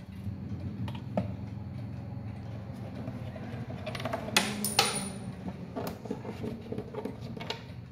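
Hands knock and click against a wooden clock case.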